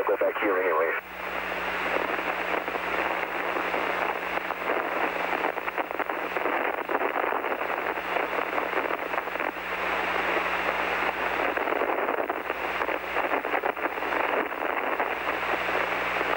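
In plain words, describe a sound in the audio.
Radio static hisses steadily.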